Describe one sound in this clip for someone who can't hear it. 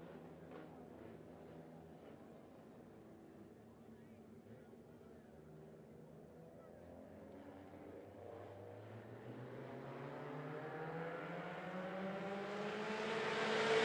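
Race car engines roar and rev, growing louder as the cars come closer.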